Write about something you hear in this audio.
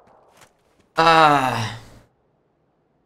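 A young man shouts excitedly into a microphone.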